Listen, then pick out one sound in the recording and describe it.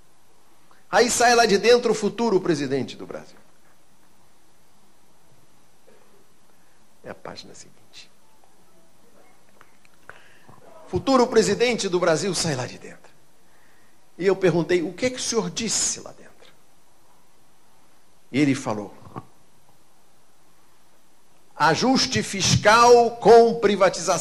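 An elderly man speaks calmly through a microphone, in short bursts with pauses.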